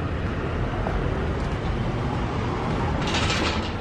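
Automatic glass doors slide open.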